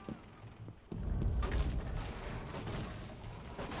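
A loud blast bursts through a wall.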